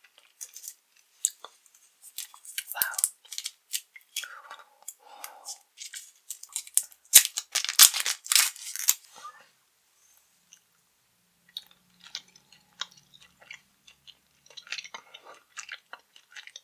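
A woman whispers close to a microphone.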